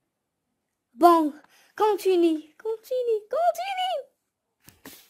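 A young girl speaks close by with a high, expressive voice.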